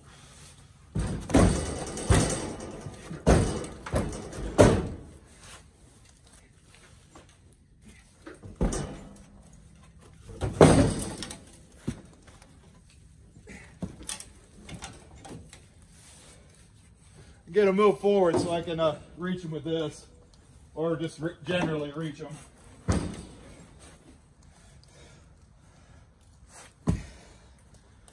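Heavy logs thud and knock against each other as they are tossed into a pickup bed.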